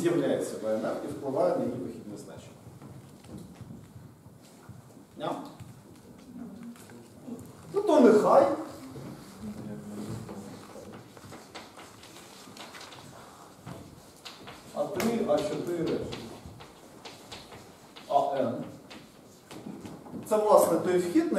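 A man speaks calmly, pausing often.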